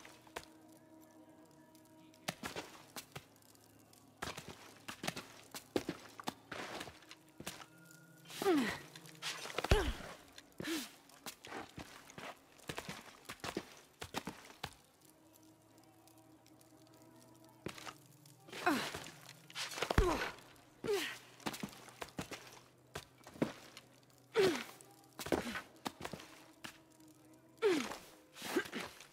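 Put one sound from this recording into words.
Footsteps and hands scrape and knock on rock while climbing.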